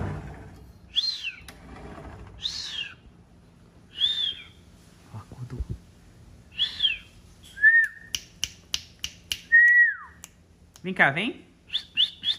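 A kitten meows repeatedly.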